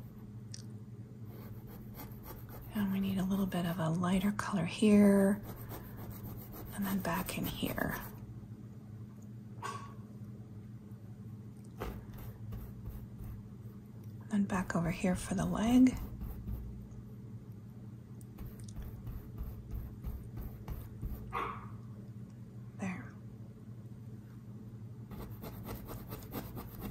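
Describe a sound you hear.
A paintbrush softly brushes and dabs on canvas.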